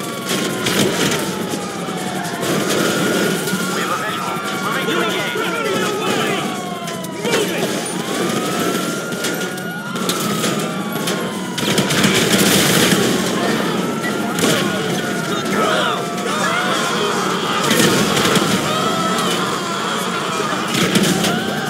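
A police siren wails up and down nearby.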